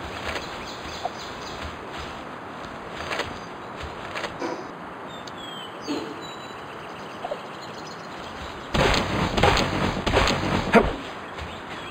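An axe chops into a tree trunk with repeated dull thuds.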